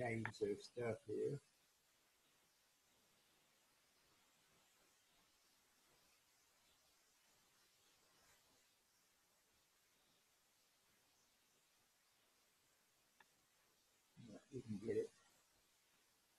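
An elderly man speaks in short bursts through an online call.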